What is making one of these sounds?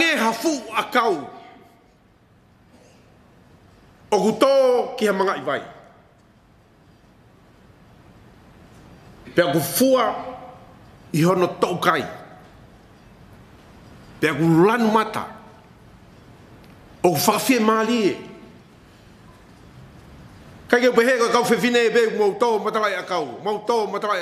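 An elderly man speaks slowly into a microphone, with pauses, in a room with a slight echo.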